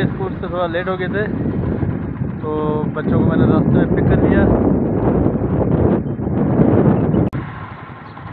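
A man talks close up, outdoors in wind.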